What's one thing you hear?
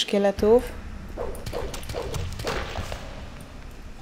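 A sword swishes and clashes.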